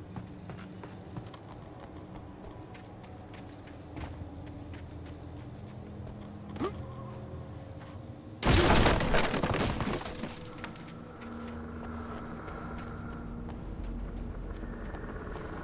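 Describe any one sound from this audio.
Footsteps crunch slowly over rough ground.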